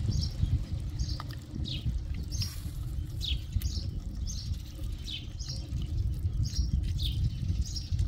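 Lemon juice drips into a pot of liquid.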